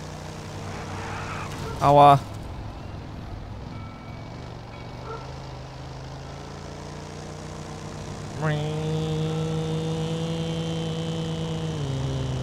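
A small engine hums steadily.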